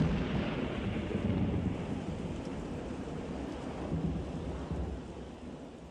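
A whooshing game attack effect swirls and hits.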